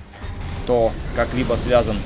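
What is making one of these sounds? A sword slashes with a sharp swish.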